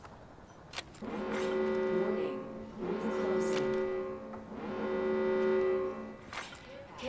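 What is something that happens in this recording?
A pitched alarm tone sounds in repeated long pulses.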